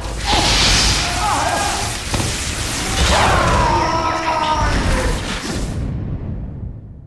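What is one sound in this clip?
Flames roar and crackle as a character burns.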